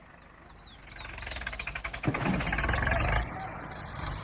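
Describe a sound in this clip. A tractor engine roars and revs hard.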